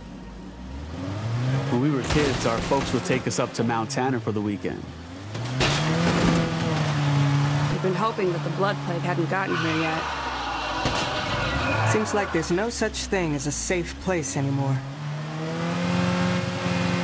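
A car engine hums and revs as a car drives along a road.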